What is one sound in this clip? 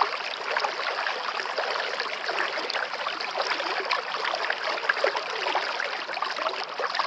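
A stream babbles and splashes steadily over rocks close by.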